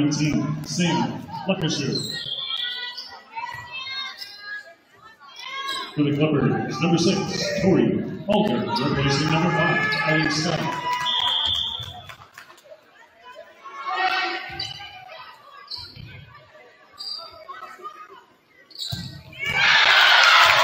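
A volleyball is hit with sharp smacks in an echoing hall.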